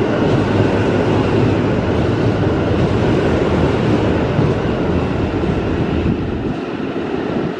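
A train rushes past at speed with a loud roar, then fades away.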